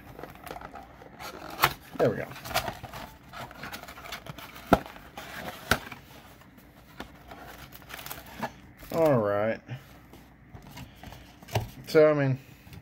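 A foil wrapper crinkles and rustles close by.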